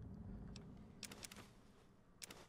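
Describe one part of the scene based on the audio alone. A short electronic click sounds as an item is taken from a menu.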